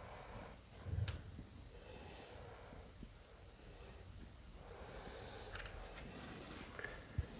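Curtain rings or hooks click against a rail.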